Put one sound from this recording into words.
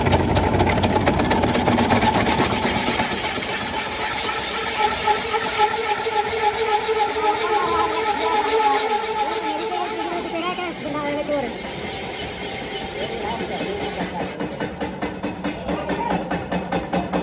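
A lathe motor whirs steadily.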